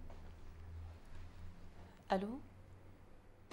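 A young woman talks on a phone.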